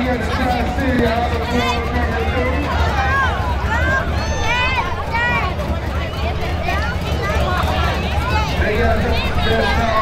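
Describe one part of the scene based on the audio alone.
A Honda Gold Wing touring motorcycle idles.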